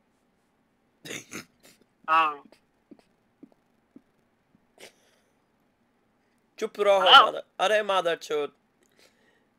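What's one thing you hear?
A teenage boy speaks in short bursts close to a microphone.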